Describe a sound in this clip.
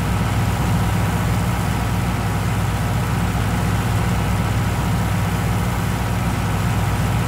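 A tractor engine rumbles steadily at idle.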